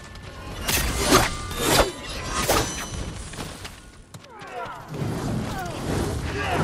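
Blades swish and clash in quick bursts of fighting.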